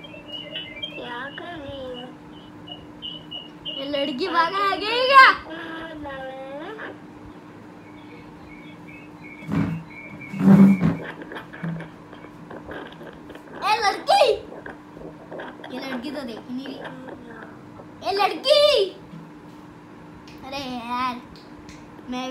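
A young boy speaks excitedly close by.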